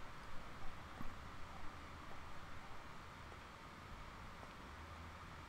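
Footsteps tread slowly on stone steps.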